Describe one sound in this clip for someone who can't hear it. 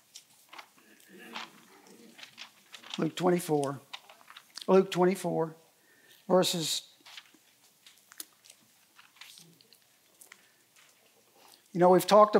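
An older man speaks slowly and calmly through a microphone, pausing often.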